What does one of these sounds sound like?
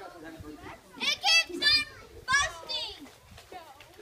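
Young children shout and squeal loudly nearby, outdoors.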